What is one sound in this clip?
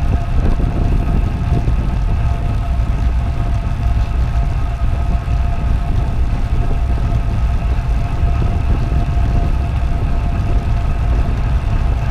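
Bicycle tyres hum steadily on a smooth road.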